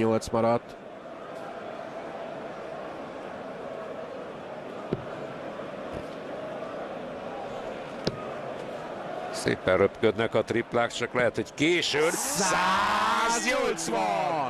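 A crowd murmurs steadily in a large hall.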